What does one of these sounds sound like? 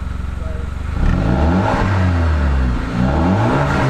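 A car engine revs up and down several times, loud and throaty.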